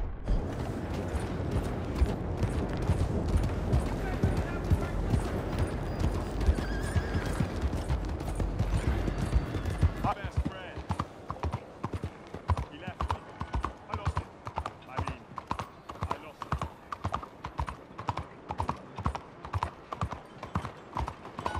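A horse's hooves clop steadily on a cobbled street.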